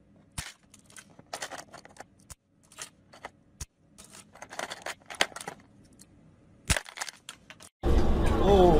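Plastic clothes pegs clatter and click against each other in a plastic box.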